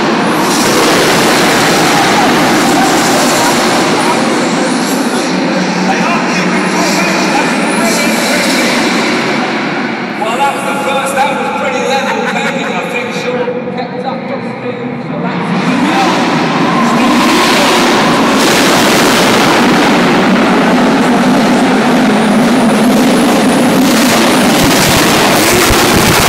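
Racing car engines roar and rev loudly in a large echoing hall.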